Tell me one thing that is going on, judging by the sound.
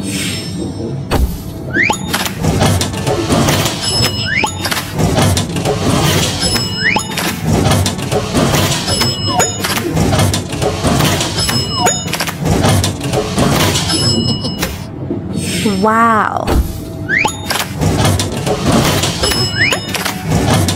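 Game cards flip over with bright chiming jingles.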